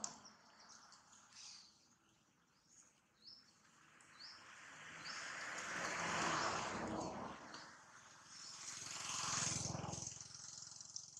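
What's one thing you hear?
Dry leaves rustle and crunch under a monkey's feet as it walks.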